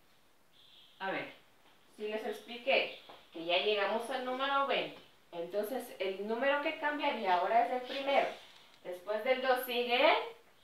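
A young woman speaks clearly and with animation.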